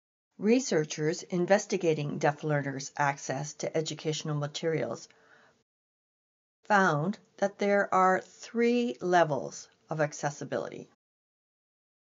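A woman speaks calmly and clearly close to a microphone.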